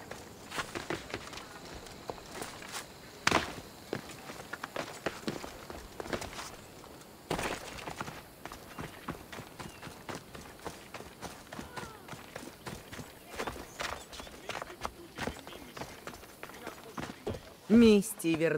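Footsteps crunch quickly over dirt and grass.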